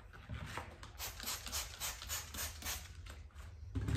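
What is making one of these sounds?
A spray bottle squirts several times.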